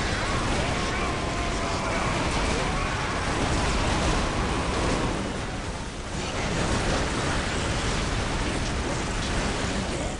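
Flamethrowers roar.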